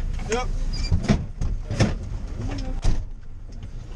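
A vehicle door clunks open and shut.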